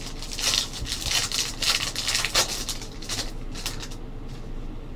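Foil wrappers crinkle and tear as packs are opened.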